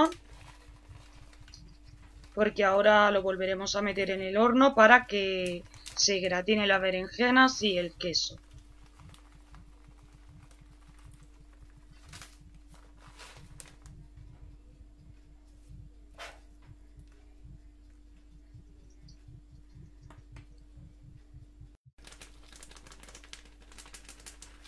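A plastic bag crinkles in someone's hands.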